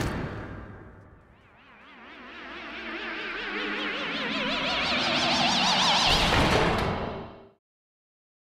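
A rising whoosh swells as a figure is launched upward.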